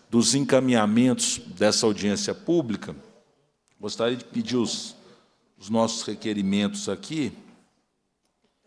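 A man speaks calmly into a microphone, close and clear.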